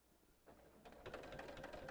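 A sewing machine stitches with a rapid rattle.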